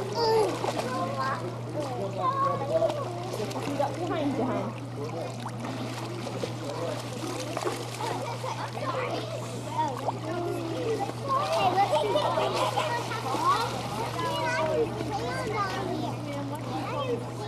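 A young woman talks cheerfully and encouragingly to a small child nearby.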